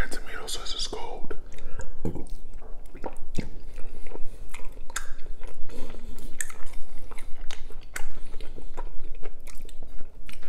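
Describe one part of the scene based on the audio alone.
A man chews close up with loud wet mouth sounds.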